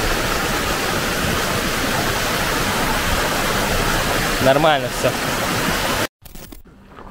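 Water rushes and splashes over stones.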